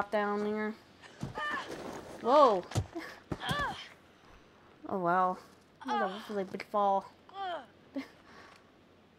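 A young woman pants and gasps as she climbs.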